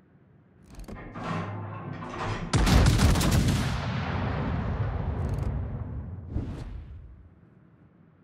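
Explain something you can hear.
Shells explode with a deep, rolling rumble.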